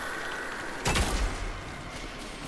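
A heavy gun fires with a loud boom.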